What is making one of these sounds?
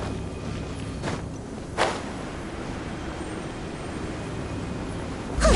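Wind rushes steadily while gliding through the air, with brief whooshes.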